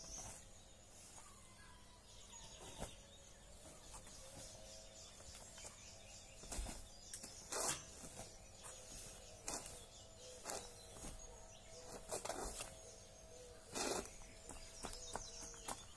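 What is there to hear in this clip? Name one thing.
Feet shuffle and stamp on a hard floor.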